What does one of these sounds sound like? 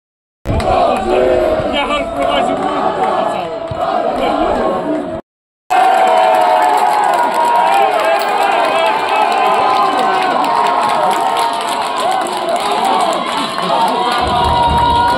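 A crowd of spectators sings and chants loudly close by, outdoors.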